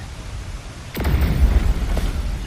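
A magical blast whooshes loudly.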